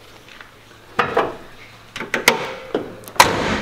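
Metal parts clink and knock under a car hood.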